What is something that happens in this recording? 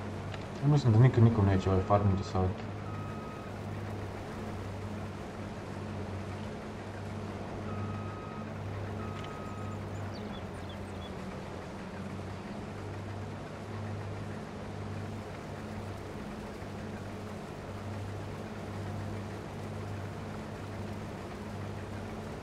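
A harvester engine drones steadily.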